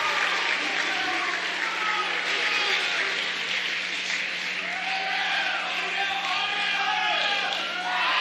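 An audience claps and cheers loudly in a large hall.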